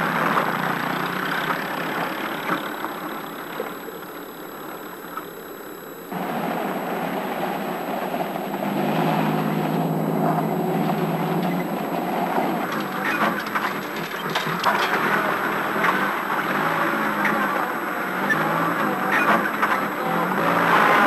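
A jeep engine rumbles as the vehicle drives slowly along a dirt lane.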